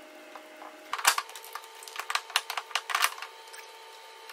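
Plastic parts click and clatter as they are snapped into place.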